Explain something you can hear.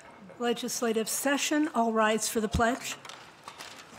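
An elderly woman speaks clearly into a microphone.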